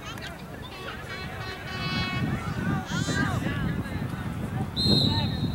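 Men and women shout and cheer from a distance outdoors.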